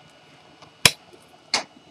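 A network cable plug clicks into a computer port.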